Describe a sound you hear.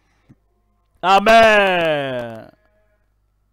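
A man's voice calls out one long, slowly falling note.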